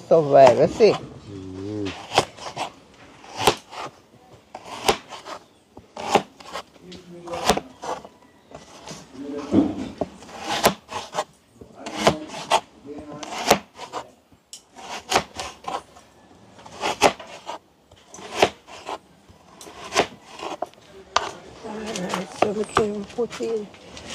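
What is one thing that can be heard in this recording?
A knife chops through carrots onto a wooden board with sharp knocks.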